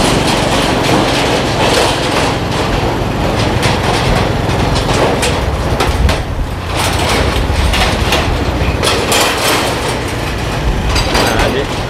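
A metal bridge deck rattles and clatters under rolling wheels.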